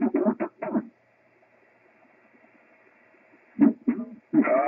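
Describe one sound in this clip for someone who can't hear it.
Radio static hisses softly between stations.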